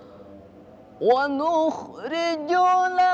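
A young man chants in a loud, drawn-out melodic voice, close by.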